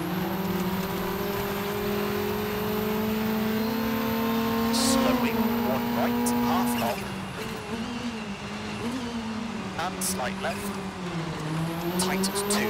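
A rally car engine roars at high revs, then drops in pitch as the car slows.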